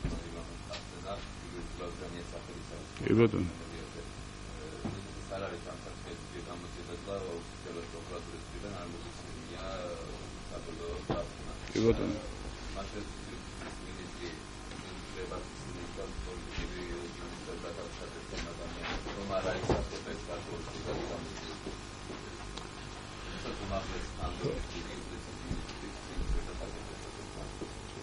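A man speaks calmly into microphones, heard close up.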